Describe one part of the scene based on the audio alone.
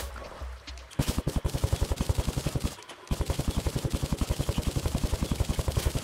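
A pickaxe chips rapidly at dirt and stone in quick, even strokes.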